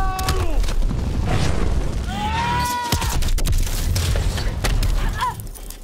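Debris crashes and scatters as a helicopter hits the ground.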